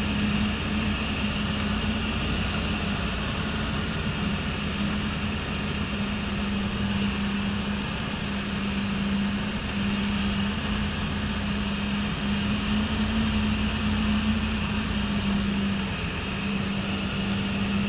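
A small propeller plane's engine drones loudly and steadily from close by.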